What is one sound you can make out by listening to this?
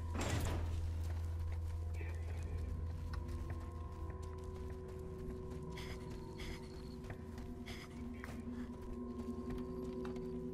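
Footsteps crunch quickly over rough ground.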